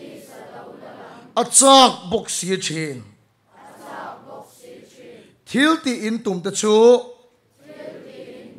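A crowd murmurs prayers aloud together in a large hall.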